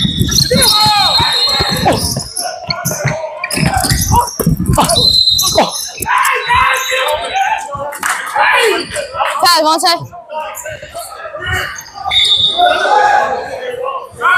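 Sneakers squeak sharply on a hard court in a large echoing gym.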